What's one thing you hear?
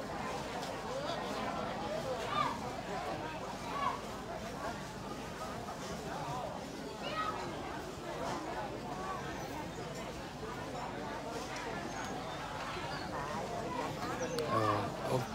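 People murmur and talk quietly in the background outdoors.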